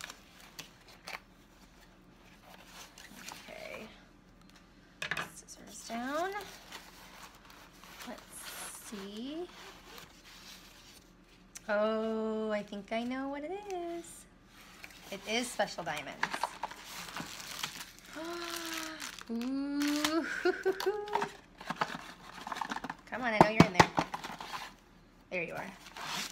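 A cardboard box rustles and scrapes as hands handle it.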